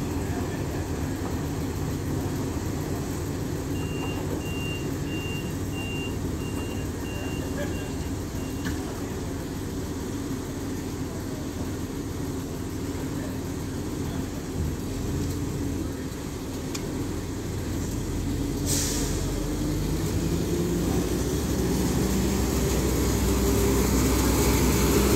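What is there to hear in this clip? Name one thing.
A diesel train engine hums steadily nearby, growing louder as the train pulls away.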